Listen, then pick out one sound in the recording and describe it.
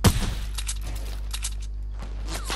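Wooden panels knock sharply into place.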